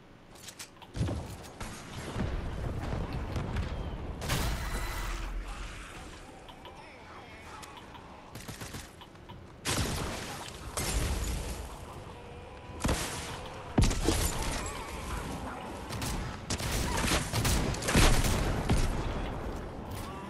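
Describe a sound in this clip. Game sound effects of a pickaxe swinging and striking thud loudly.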